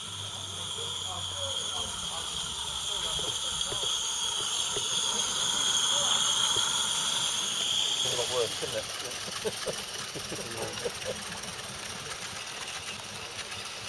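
A live-steam model locomotive chuffs as it pulls a train.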